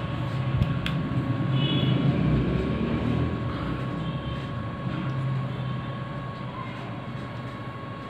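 A young man hums a buzzing tune through a comb held to his lips.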